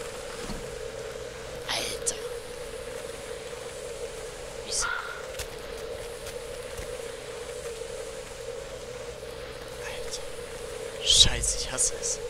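Footsteps scuff slowly across a gritty floor.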